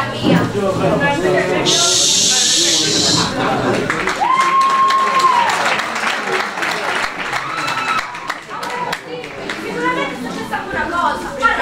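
A woman speaks loudly on stage, a little distant.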